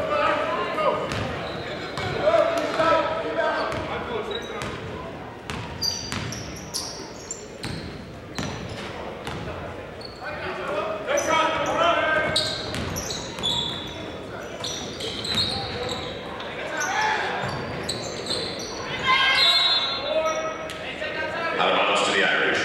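A crowd chatters and calls out in an echoing gym.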